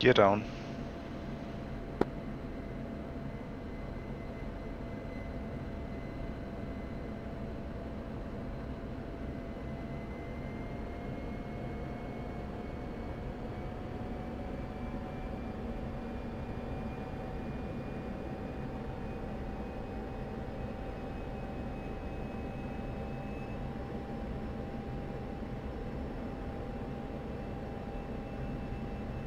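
A jet engine whines and roars steadily, slowly rising in pitch.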